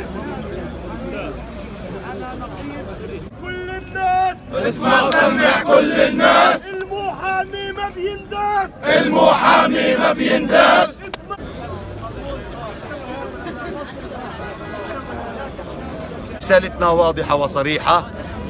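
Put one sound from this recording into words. A crowd murmurs outdoors.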